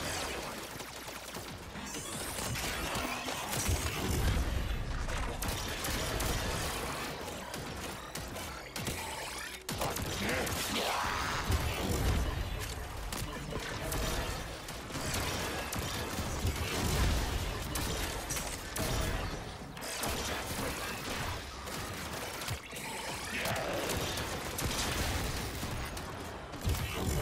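Gunfire and energy blasts crackle and boom in a fast game battle.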